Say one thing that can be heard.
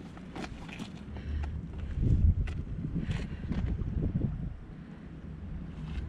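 Footsteps scuff on a gravelly path.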